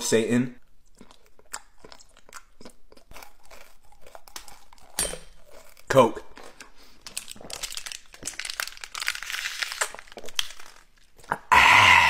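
A young man chews and crunches food loudly.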